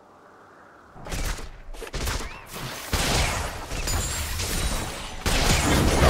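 Game combat effects burst and crash in quick succession.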